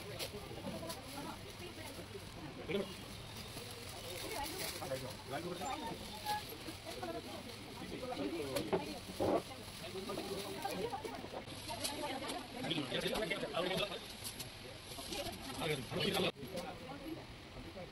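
Fabric rustles as cloth is unfolded and shaken.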